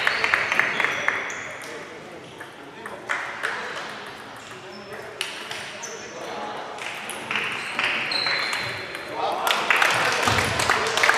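Table tennis balls click on tables and paddles, echoing through a large hall.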